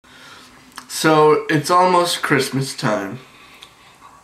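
A young man speaks close up, with animation.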